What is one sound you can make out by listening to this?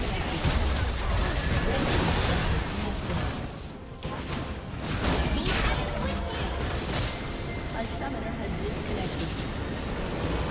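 Game spells and attacks crackle and boom in quick bursts.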